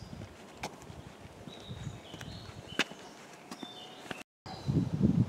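Footsteps tread on stone steps outdoors.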